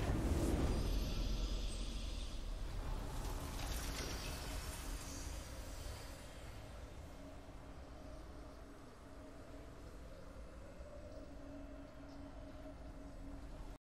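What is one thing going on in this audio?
A triumphant game fanfare swells and then settles into a soft, sustained tone.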